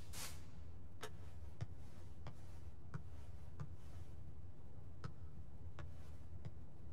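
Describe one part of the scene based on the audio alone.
Footsteps tread slowly on a wooden floor.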